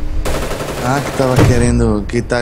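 A large explosion booms close by.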